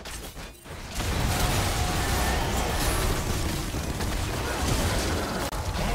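Magic spell effects crackle and burst in a fight.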